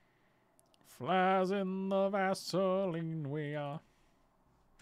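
A man speaks close to a microphone in a loud, drawn-out, sing-song voice.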